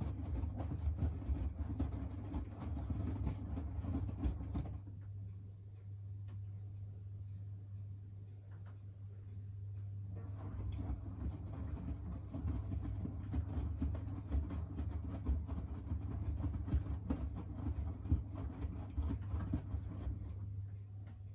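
Wet laundry sloshes and thumps as a washing machine drum turns.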